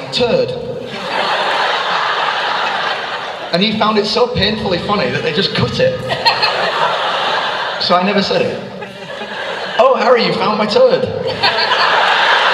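A young man speaks calmly through a microphone in a large echoing hall.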